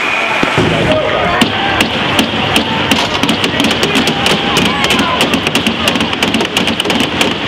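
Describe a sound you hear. Hockey sticks clatter and tap against the ice and boards.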